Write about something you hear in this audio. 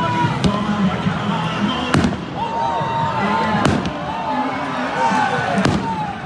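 A large crowd cheers and chants loudly in an open stadium.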